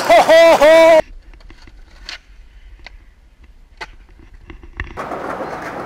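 A skateboard clacks and its wheels roll on pavement.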